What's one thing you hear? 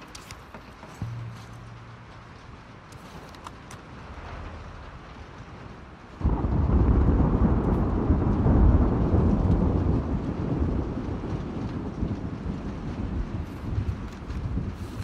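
A paper card rustles as it is picked up and turned over.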